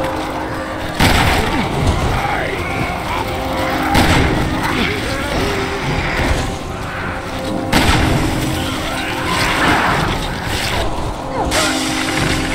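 A shotgun fires with loud booms.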